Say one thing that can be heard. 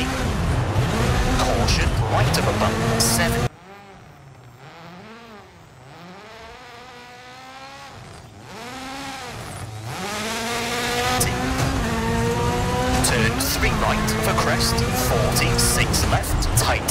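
Gravel crunches and pings under speeding tyres.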